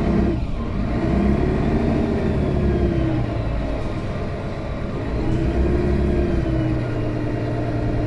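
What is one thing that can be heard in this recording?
Rattles of a bus interior clatter.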